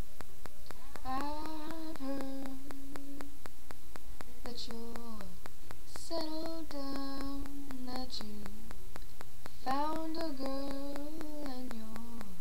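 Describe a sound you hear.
A young woman sings close to a microphone.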